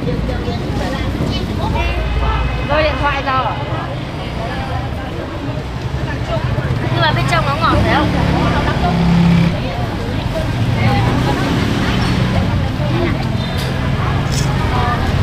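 A woman talks nearby in a cheerful voice.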